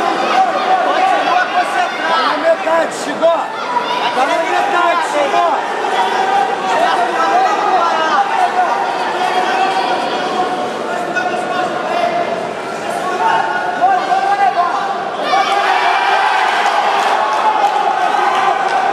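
A crowd of spectators shouts and cheers throughout a large echoing hall.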